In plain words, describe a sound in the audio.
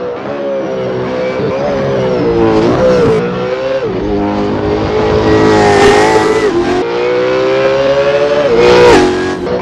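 A racing car engine roars loudly, its pitch rising and falling as it shifts gears.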